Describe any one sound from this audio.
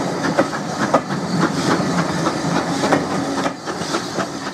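Railway carriages rumble and clatter past close by.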